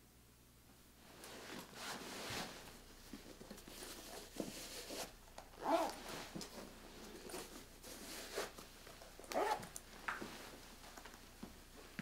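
Clothing rustles as someone shifts and moves about.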